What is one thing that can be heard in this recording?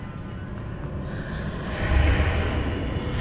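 A magical shimmer swells up and rushes.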